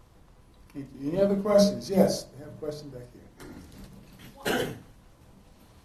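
A man speaks animatedly, with short pauses.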